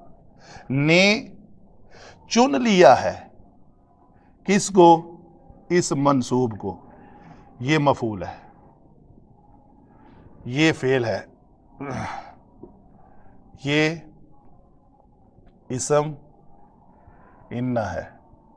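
An elderly man speaks calmly in short phrases with pauses, close by.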